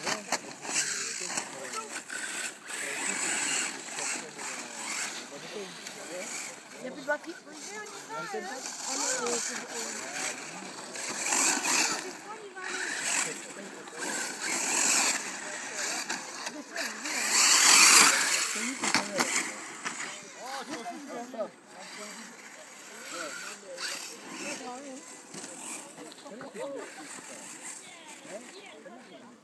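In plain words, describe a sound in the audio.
Small tyres crunch and skid on loose gravel.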